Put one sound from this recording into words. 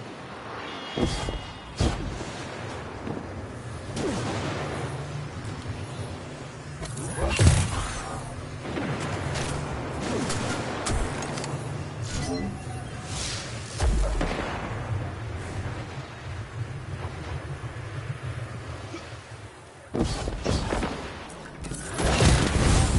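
Guns fire in short bursts with sharp cracks.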